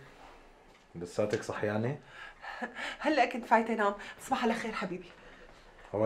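A middle-aged woman speaks with agitation, close by.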